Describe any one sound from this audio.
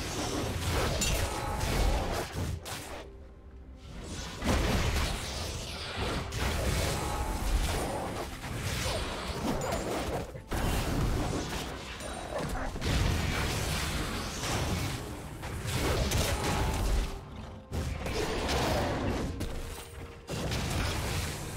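Spell and weapon effects from a fantasy battle game whoosh, clash and crackle in quick bursts.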